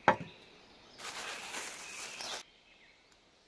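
Liquid pours and splashes from a plastic jug.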